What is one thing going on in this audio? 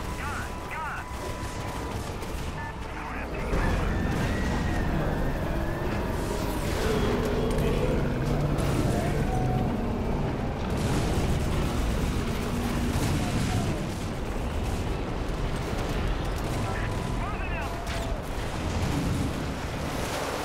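Explosions boom repeatedly.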